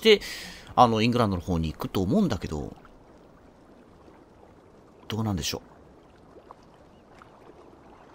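Water laps gently against a rocky shore.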